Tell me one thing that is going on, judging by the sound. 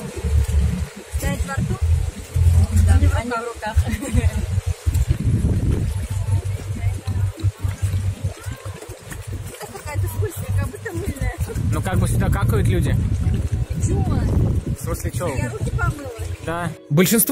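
A middle-aged woman talks with animation.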